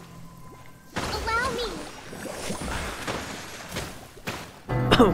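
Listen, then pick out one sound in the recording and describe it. Bright magical chimes sparkle and shimmer.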